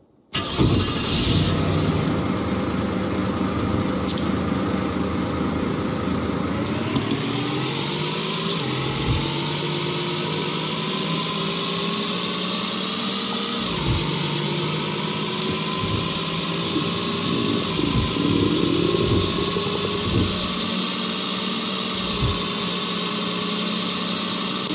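A car engine hums steadily and rises in pitch as the car speeds up.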